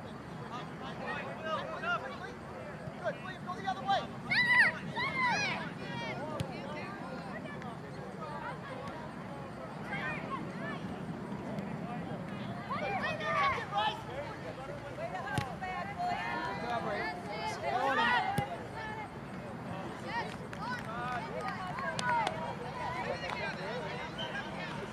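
Young players shout to one another across an open field.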